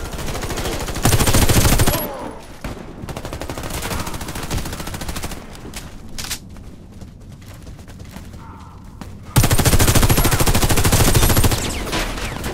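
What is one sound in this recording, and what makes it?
Rapid gunfire bursts loudly from an automatic rifle.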